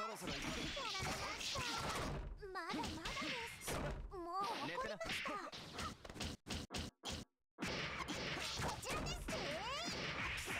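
Rapid punches and kicks land with sharp smacking hits.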